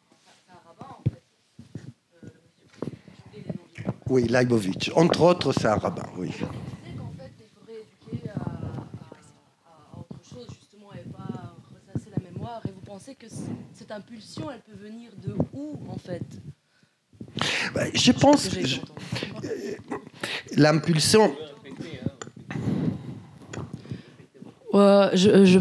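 An elderly man speaks calmly into a microphone in a large room.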